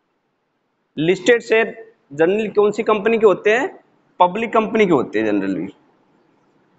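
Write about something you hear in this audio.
A man speaks calmly and clearly, as if teaching, close by.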